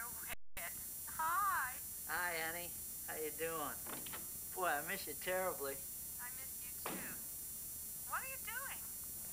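A man speaks into a telephone.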